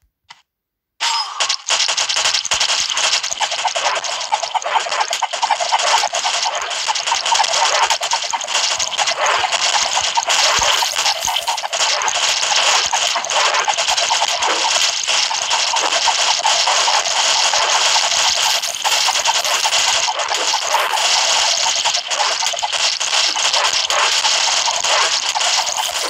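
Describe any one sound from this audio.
Game explosions and hit effects crackle and pop rapidly.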